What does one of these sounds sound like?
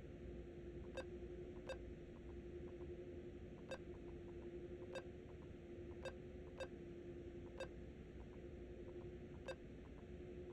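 Keypad buttons click one at a time.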